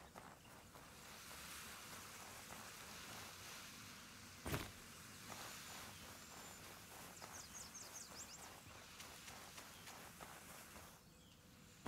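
Waves wash gently onto a shore.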